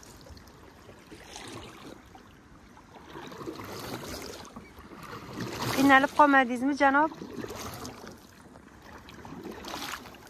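A paddle dips and splashes in water.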